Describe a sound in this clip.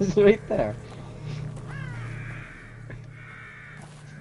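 Footsteps rustle softly through tall grass.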